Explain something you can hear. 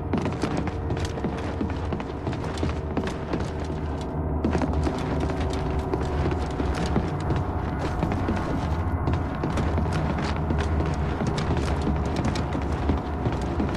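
Heavy boots thud on a metal floor at a steady walking pace.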